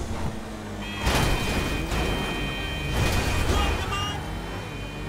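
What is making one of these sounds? A car crashes hard into another car.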